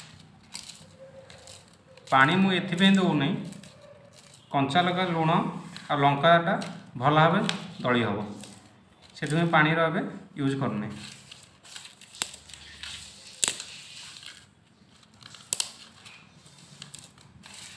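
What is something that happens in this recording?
Fingers crumble dry garlic skins and rustle them on a metal plate.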